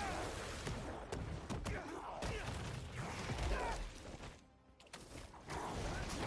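Heavy blows thud and crack in a fight.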